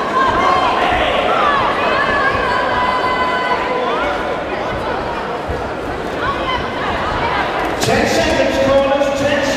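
Gloved punches thud against a boxer.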